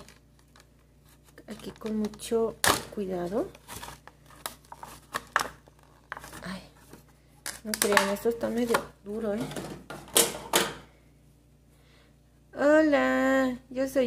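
Small plastic toys tap and knock as they are handled.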